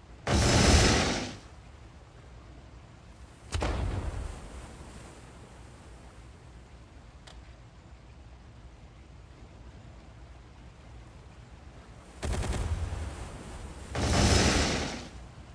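Heavy naval guns fire in loud booming volleys.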